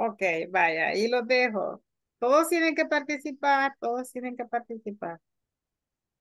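An elderly woman speaks calmly through an online call.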